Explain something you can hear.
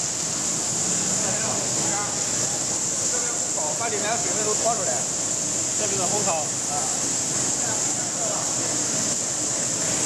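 A man talks nearby over the machine noise.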